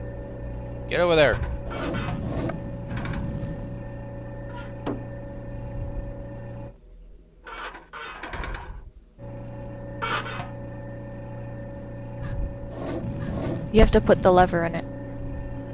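Metal parts clank and whir.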